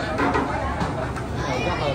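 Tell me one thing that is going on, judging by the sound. Steam hisses from a cooking pot.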